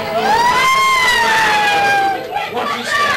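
A young woman screams in fright close by.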